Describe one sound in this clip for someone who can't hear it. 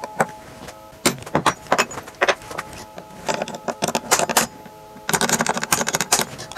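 A metal tool scrapes and taps on metal.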